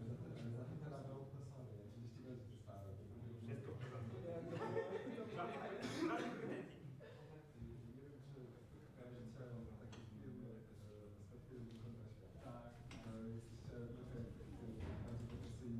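Young men and women chatter nearby in a room with some echo.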